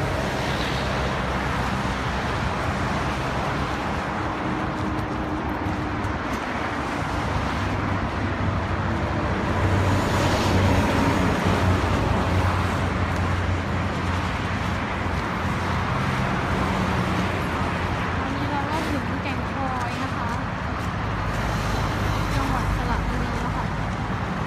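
Wind blows hard outdoors across the microphone.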